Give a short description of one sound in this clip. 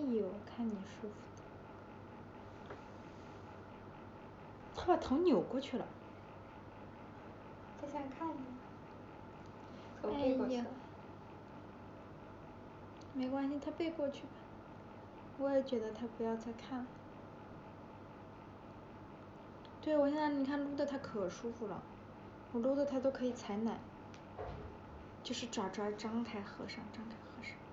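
A young woman speaks softly and closely in short bursts, as into a phone microphone.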